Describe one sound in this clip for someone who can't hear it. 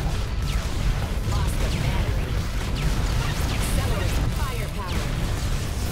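Video game laser shots zap with quick falling tones.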